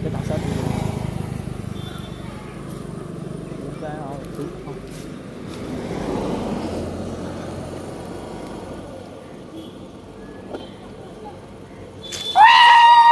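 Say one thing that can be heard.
A scooter engine putters nearby.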